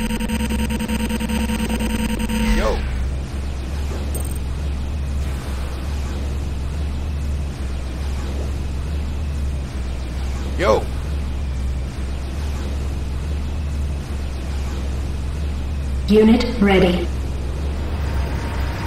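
A vehicle engine hums low and steady.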